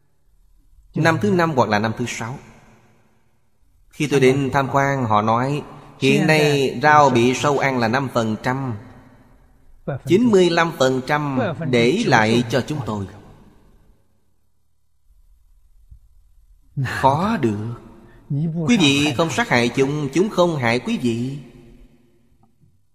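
An elderly man speaks calmly and warmly into a close microphone, with pauses.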